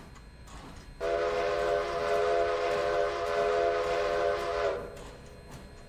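A steam locomotive whistle blows loudly and steadily.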